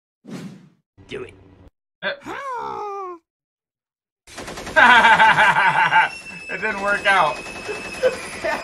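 Several men talk and laugh over microphones in an online call.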